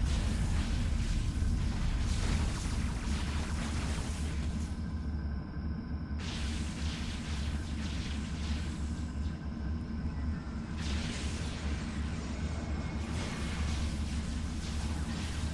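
Electric zaps crackle and hiss in bursts.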